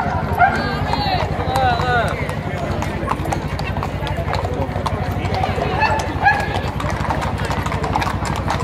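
A crowd of adults murmurs and chats nearby.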